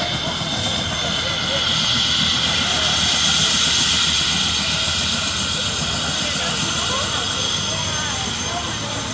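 A helicopter engine whines and hums steadily nearby.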